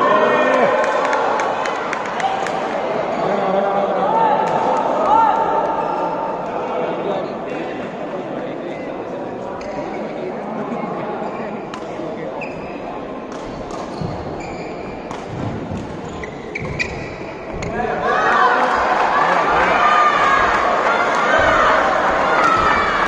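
A crowd of spectators chatters in a large echoing hall.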